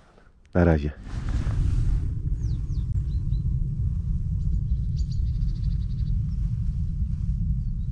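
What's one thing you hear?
Wind blows steadily across an open field.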